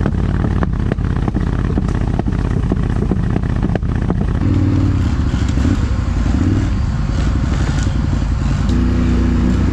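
Wheels thump and rattle over rough, leaf-covered ground.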